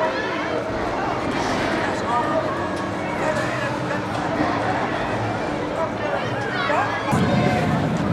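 A large swinging ride whooshes back and forth.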